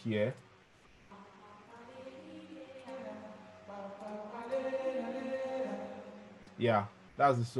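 A recorded song with a singing voice plays back.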